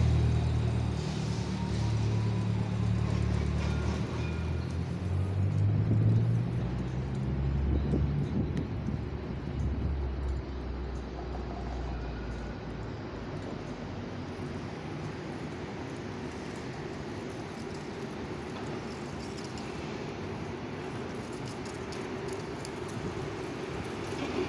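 Traffic rumbles low in the distance on a quiet city street.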